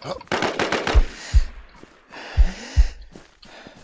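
Rifle shots boom with deep thuds.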